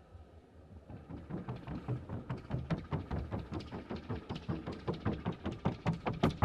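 The hooves of a Colombian paso horse in a fast trocha gait clatter in a rapid rhythm on a wooden sounding board.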